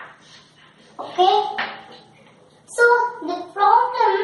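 A woman speaks nearby in a teaching tone.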